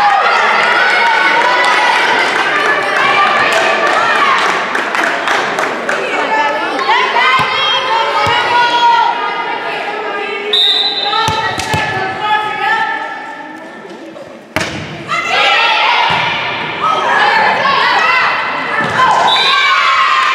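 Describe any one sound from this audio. Young women and girls shout and cheer in a large echoing gym.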